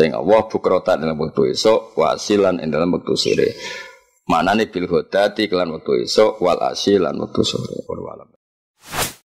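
A man speaks calmly and steadily into a microphone.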